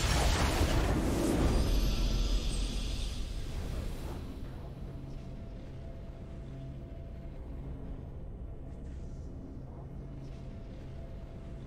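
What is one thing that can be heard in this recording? A victory fanfare plays with a swelling, triumphant sound.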